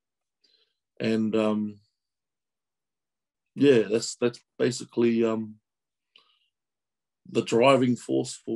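A man speaks calmly through an online call.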